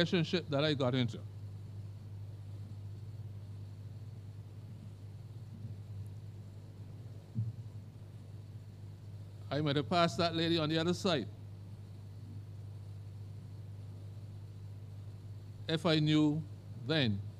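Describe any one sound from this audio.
A man speaks slowly and calmly into a microphone, in short phrases with long pauses.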